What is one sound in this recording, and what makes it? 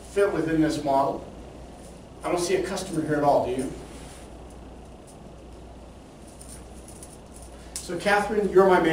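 An elderly man lectures calmly in a room with a slight echo, speaking in bursts with pauses.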